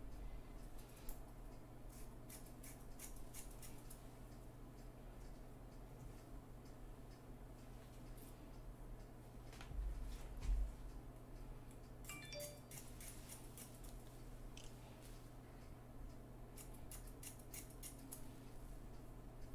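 Scissors snip close by with quick, sharp clicks.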